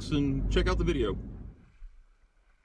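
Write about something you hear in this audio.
A man speaks calmly close by inside a car.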